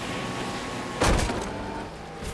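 A jet ski thuds hard against the shore.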